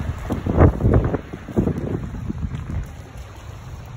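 A dog splashes through shallow water.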